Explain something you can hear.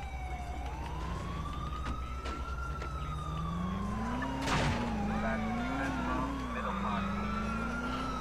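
A car engine revs as the car drives off.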